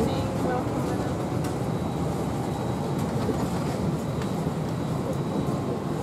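Passengers murmur quietly in a crowded aircraft cabin.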